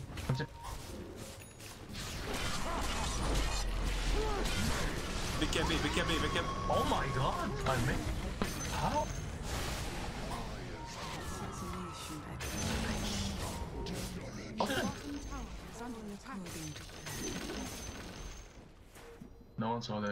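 Game spell blasts and clashing battle effects crackle and boom.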